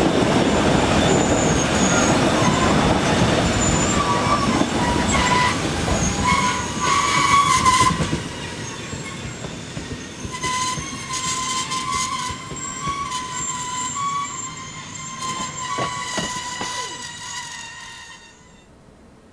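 Train wheels squeal and screech on the track.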